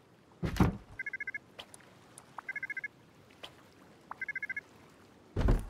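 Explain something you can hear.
Short electronic beeps chirp in quick pairs.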